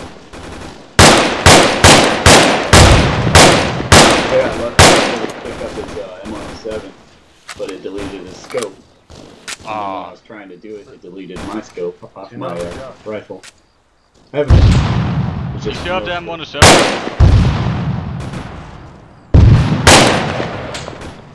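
Rifle shots crack loudly in quick bursts, echoing across open ground.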